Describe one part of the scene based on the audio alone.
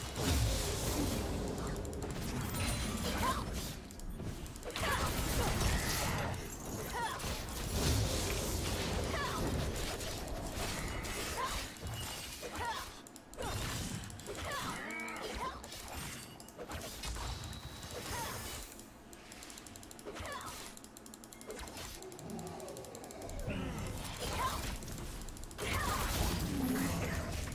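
Game spells and attacks crackle and boom in quick bursts.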